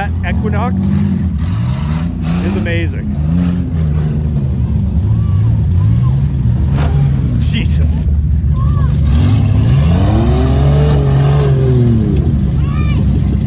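Tyres spin and churn through wet mud.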